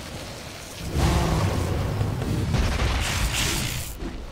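Fighting sound effects clash and burst in a video game.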